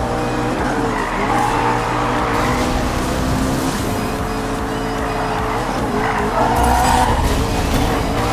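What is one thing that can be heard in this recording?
Tyres screech as a car skids through a bend.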